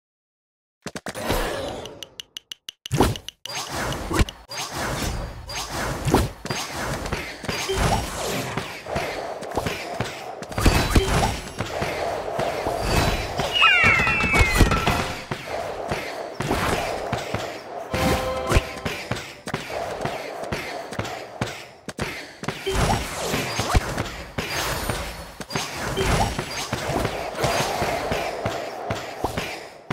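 Game sound effects pop, zap and chime busily.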